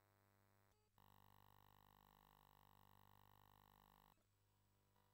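A steady electronic buzz sounds from a game console.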